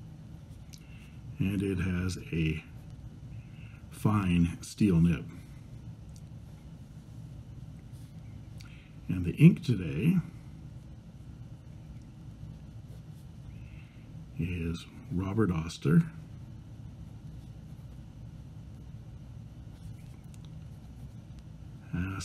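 A pen nib scratches softly on paper.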